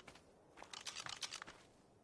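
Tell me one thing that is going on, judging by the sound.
Tall grass rustles as something pushes through it.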